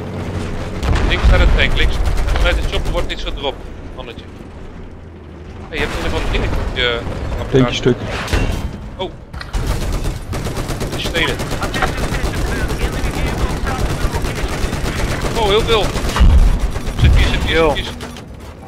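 Explosions blast nearby.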